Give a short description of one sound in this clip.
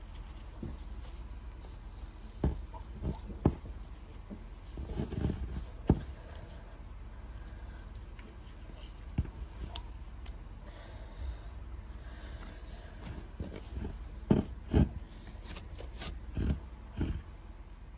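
Soft slime squishes and crackles stickily under fingers.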